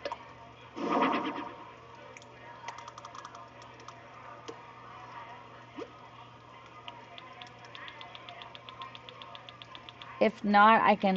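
Soft game menu clicks tick quickly as a cursor scrolls through items.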